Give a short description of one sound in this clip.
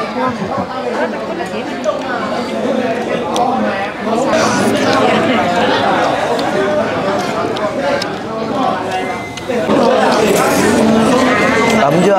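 Children slurp noodles loudly.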